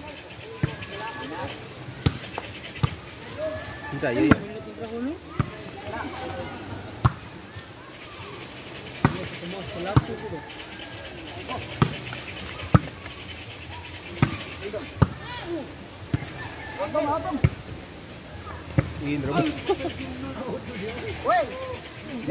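Young men call out and shout to each other outdoors.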